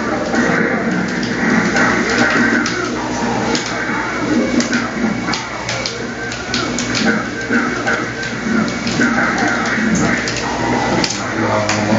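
Fighting game characters grunt and yell.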